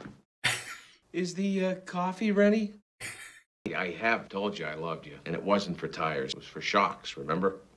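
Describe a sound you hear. A man speaks in a pleading, strained voice.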